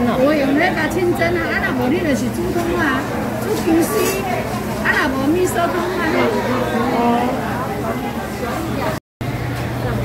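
Men and women chatter nearby in a busy, noisy crowd.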